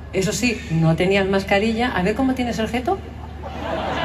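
A woman sings into a microphone through loud concert speakers in a large echoing hall.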